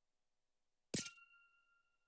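A short, sharp menu click sounds.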